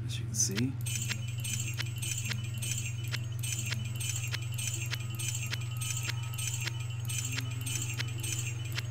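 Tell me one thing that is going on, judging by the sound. Coins clink rapidly in a steady rhythm.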